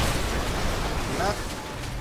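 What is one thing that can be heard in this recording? Flames crackle and roar nearby.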